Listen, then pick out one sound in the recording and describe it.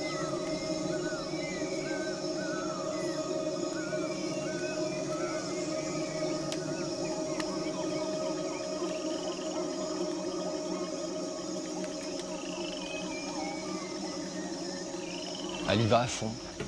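Water trickles over rocks in a stream.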